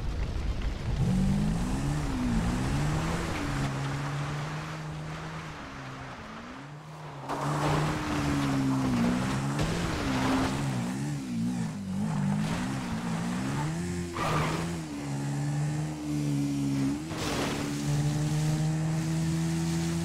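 A quad bike engine revs and drones, rising and falling in pitch.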